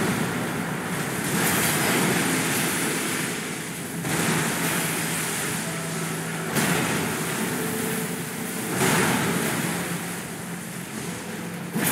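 Magic blasts crackle and roar.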